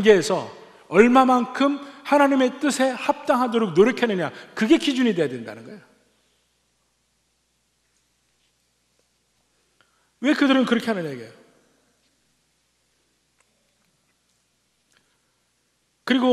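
A middle-aged man preaches with animation through a microphone.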